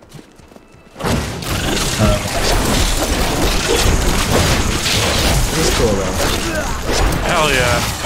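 Battle sounds of blows and magic blasts clash in quick succession.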